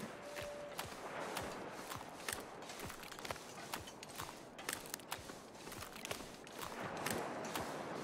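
Wind gusts, blowing snow across the ice.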